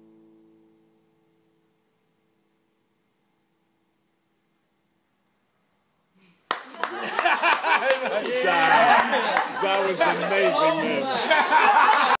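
An acoustic guitar is plucked and strummed close by.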